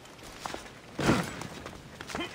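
A heavy landing thuds on stone.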